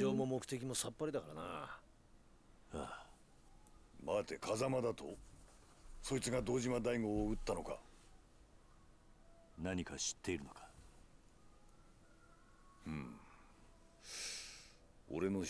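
A man speaks close to a microphone.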